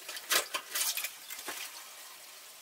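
Dishes clink in a sink.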